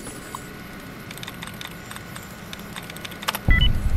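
A computer terminal clatters and beeps.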